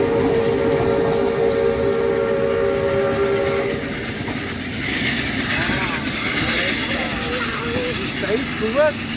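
A steam train rumbles and clatters along the tracks, fading into the distance.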